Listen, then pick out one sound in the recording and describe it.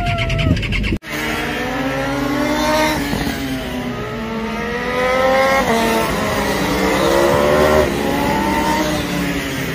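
Racing motorcycles roar past, their engines rising in pitch as they shift up through gears.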